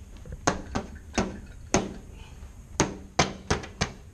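A man stomps his feet on a floor.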